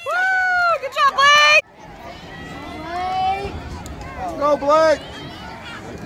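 Children shout and cheer loudly close by.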